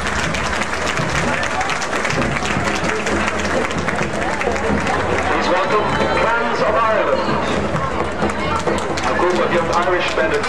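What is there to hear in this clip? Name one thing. A hand drum beats in a steady rhythm nearby.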